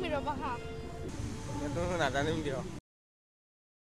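A teenage girl answers into a microphone, heard close.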